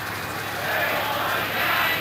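A man speaks through a megaphone.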